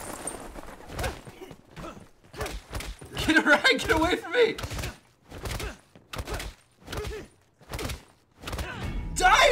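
Gunshots fire in rapid bursts in a game.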